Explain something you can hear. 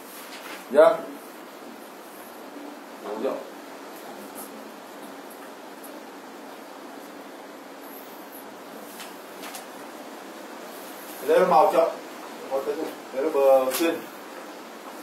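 A man speaks in short bursts nearby.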